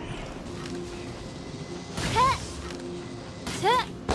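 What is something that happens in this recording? A charged magic shot fires with a bright whoosh.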